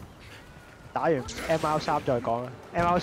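A shimmering magical burst rings out.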